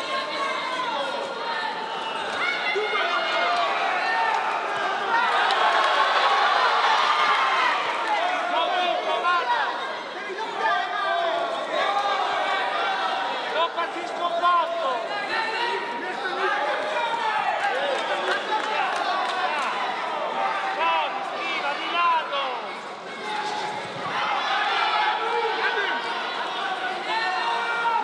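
A large crowd shouts and cheers in a big hall.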